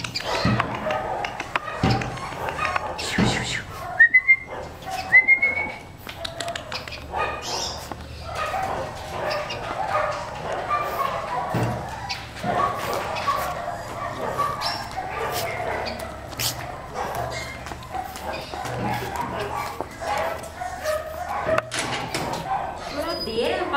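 A puppy's claws tap and patter on a hard tiled floor.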